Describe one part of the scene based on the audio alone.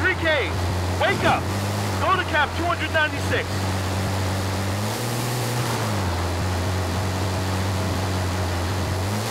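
A heavy truck engine drones steadily as the truck drives over sand.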